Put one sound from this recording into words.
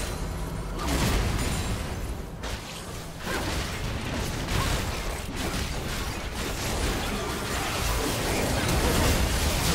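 Spell effects and hits crackle and boom in a game battle.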